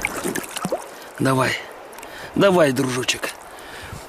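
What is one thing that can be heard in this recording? Water splashes as a fish is released into a shallow stream.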